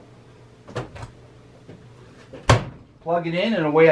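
A dryer door thumps shut.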